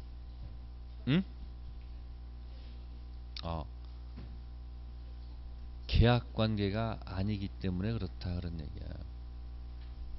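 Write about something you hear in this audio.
A man speaks through a microphone with animation, in short bursts.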